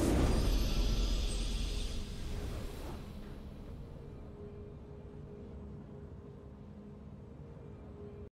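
A triumphant game jingle plays softly.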